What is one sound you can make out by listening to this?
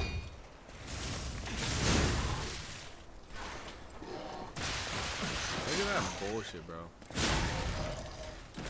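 Swords clash and ring with metallic impacts.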